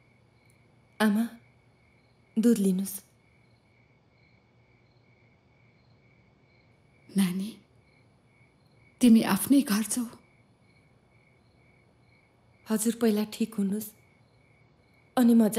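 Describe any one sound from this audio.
A middle-aged woman speaks quietly and firmly, close by.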